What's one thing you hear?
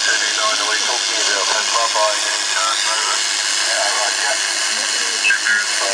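Steady radio static hisses from a small loudspeaker.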